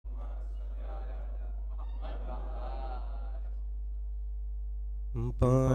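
A young man recites softly into a microphone, then raises his voice into a loud chant.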